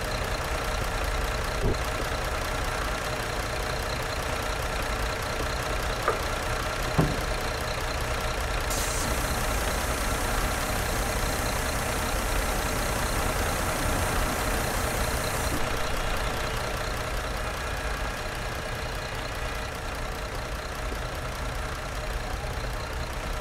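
A bus engine idles with a steady low hum.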